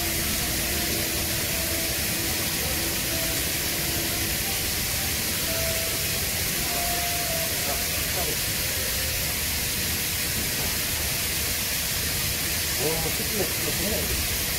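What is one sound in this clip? An electric welding arc hisses and crackles steadily.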